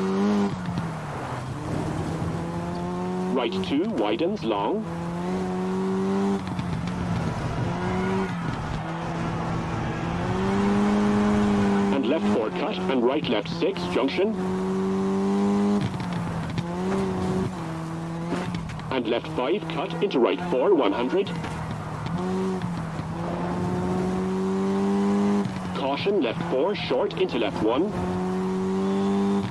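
A rally car engine roars and revs up and down through the gears.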